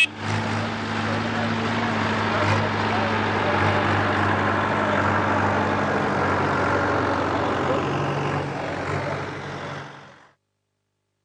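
A tractor engine rumbles as it drives past and fades away.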